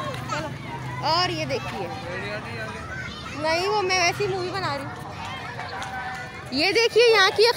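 Children shout excitedly close by.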